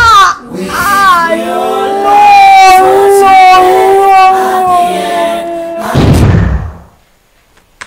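A woman wails and sobs loudly in distress.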